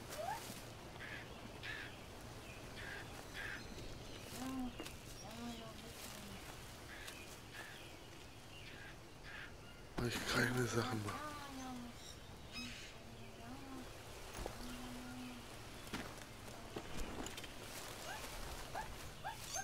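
Footsteps crunch on dry leaves on a forest floor.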